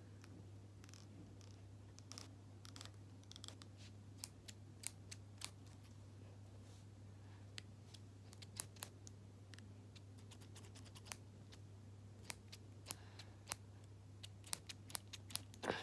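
Scissors snip near the microphone with sharp clicks.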